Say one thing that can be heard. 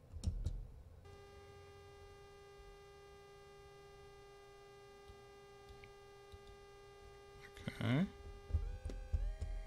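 An electronic device gives off a steady, buzzing tone.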